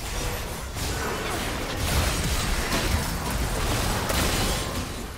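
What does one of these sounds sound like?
Spell effects whoosh and crackle in a fast game battle.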